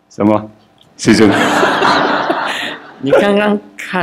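An audience laughs together.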